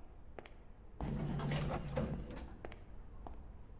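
Footsteps walk on a hard floor.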